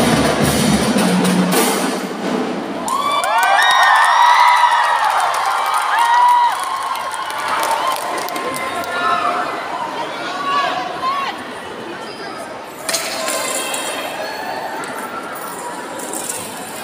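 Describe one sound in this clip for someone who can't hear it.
Drums beat in a marching band.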